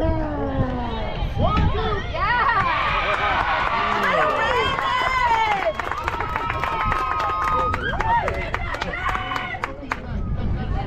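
Young women shout and cheer excitedly nearby.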